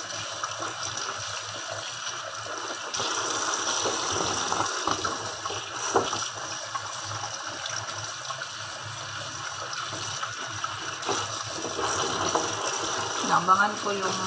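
Water splashes as hands rinse food in a colander.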